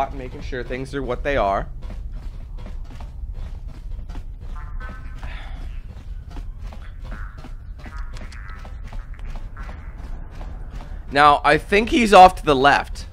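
Footsteps run quickly on a hard metal floor.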